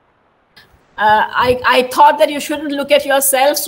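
An older woman speaks with animation over an online call.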